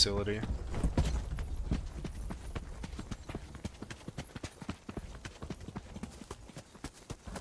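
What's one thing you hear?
Quick footsteps patter over the ground.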